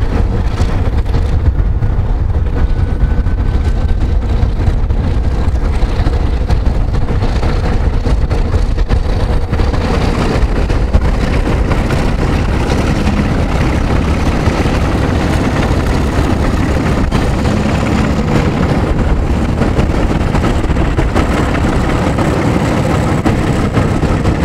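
Diesel-electric locomotives rumble past under power.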